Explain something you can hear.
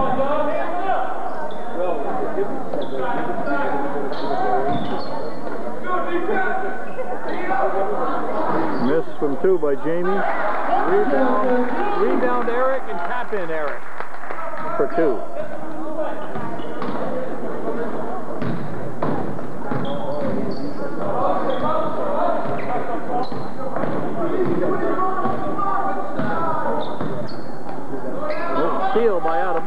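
A crowd of spectators chatters steadily in a large echoing gym.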